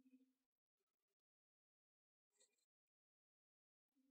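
A man sighs deeply.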